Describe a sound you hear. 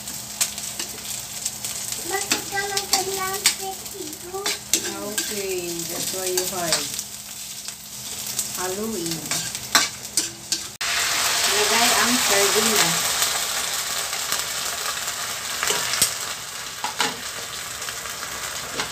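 A spatula scrapes and taps against a metal wok.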